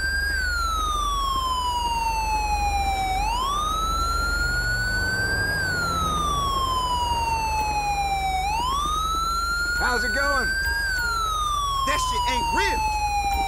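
A siren wails, rising and falling slowly, close by.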